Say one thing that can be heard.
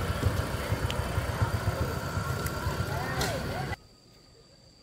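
A motorbike engine rumbles nearby.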